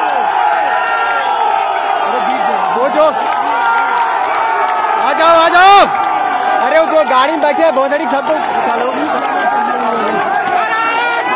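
A large crowd of men chants and shouts loudly outdoors.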